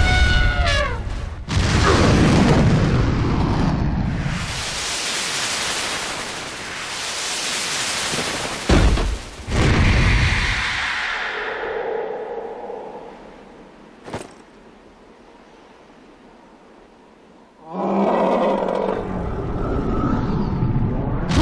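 A huge creature roars loudly.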